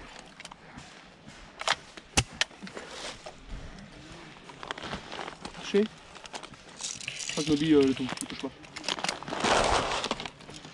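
Dry leaves rustle and crunch as people shift on the ground.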